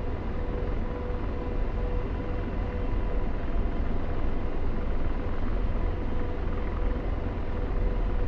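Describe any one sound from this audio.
A helicopter engine and rotor roar steadily from inside the cockpit.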